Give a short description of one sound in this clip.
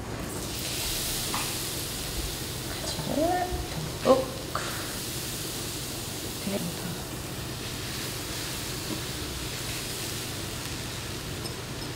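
Pieces of vegetable drop into a pan with soft thuds.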